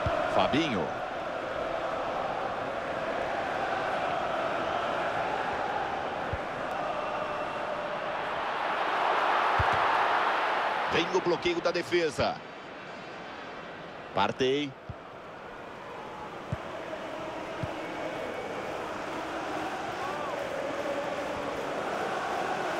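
A stadium crowd cheers and murmurs steadily, swelling to a loud roar for a moment.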